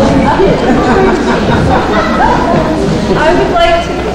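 A young woman speaks and laughs into a microphone.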